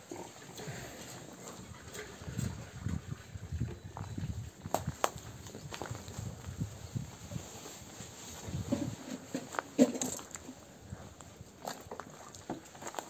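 Footsteps crunch on gravel outdoors.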